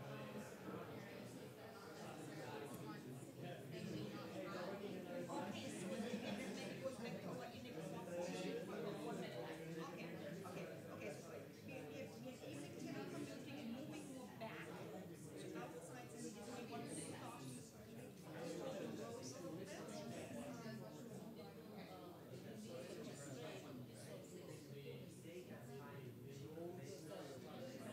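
Many men and women chatter at once in a large room.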